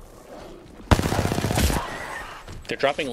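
Rapid gunshots ring out in a burst.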